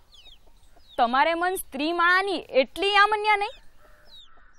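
A young woman speaks loudly and with emotion, close by.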